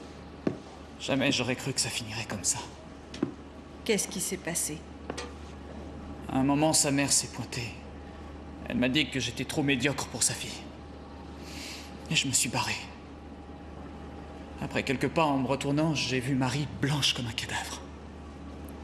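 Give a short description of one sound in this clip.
A young man speaks quietly and tensely nearby.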